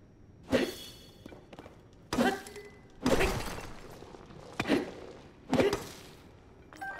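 An axe strikes rock with heavy cracking blows.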